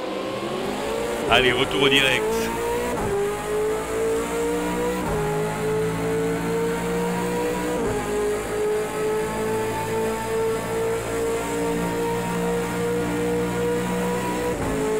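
A racing car engine drones loudly up close, its pitch dropping with each gear change.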